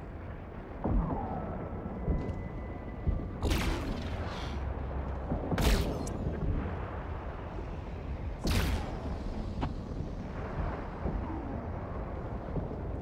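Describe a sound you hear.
Laser weapons fire in sharp, zapping bursts.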